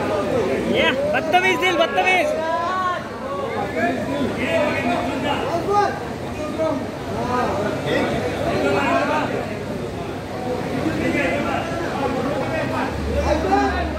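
A man speaks loudly with animation nearby.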